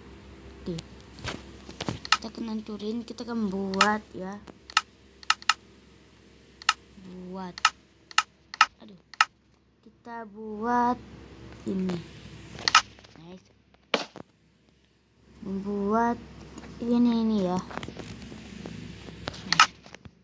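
Short game menu clicks sound now and then.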